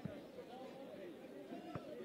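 A young man shouts outdoors.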